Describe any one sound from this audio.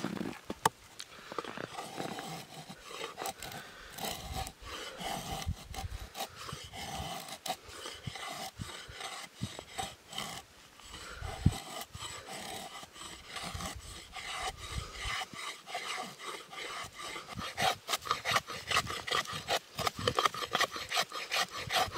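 A knife scrapes and shaves thin curls from a wooden stick.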